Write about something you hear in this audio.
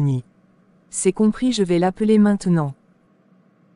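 A young woman answers calmly, close to the microphone.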